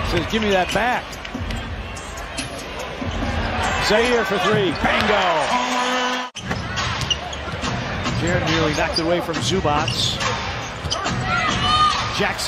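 A basketball thumps on the floor as it is dribbled.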